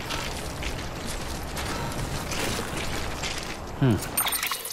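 Footsteps crunch over loose rocks and gravel.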